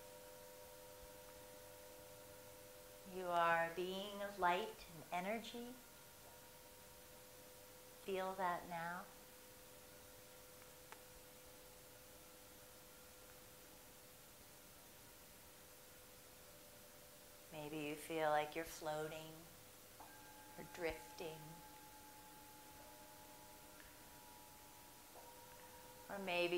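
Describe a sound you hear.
Metal singing bowls ring with long, steady humming tones.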